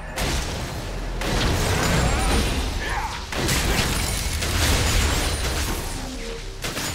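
Game spell effects crackle, whoosh and boom in a fast battle.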